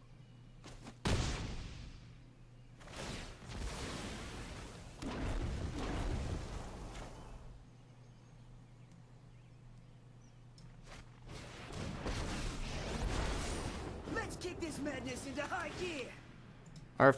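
Game effects whoosh and rumble in loud bursts.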